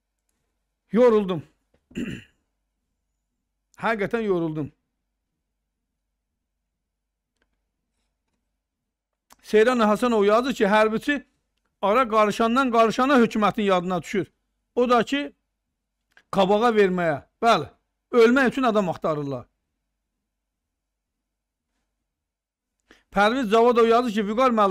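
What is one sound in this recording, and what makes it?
A middle-aged man speaks into a close microphone in short bursts with long pauses.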